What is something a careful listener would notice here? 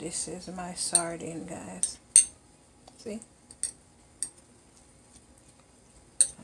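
A fork clinks and scrapes against a bowl.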